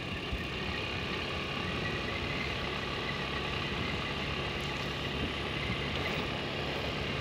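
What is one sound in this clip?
Tyres rumble over a dirt road.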